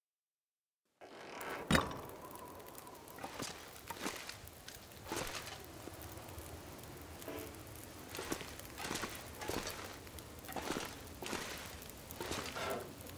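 A burning torch crackles.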